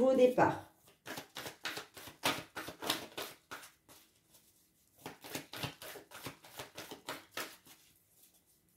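A deck of cards is shuffled with quick, repeated riffling taps.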